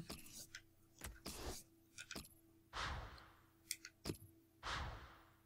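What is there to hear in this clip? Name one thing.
Soft interface clicks and whooshes sound as menus change.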